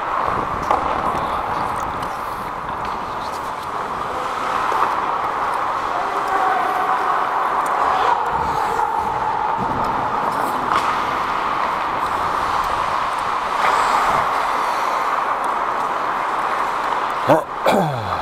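Hockey sticks click against the puck and ice now and then.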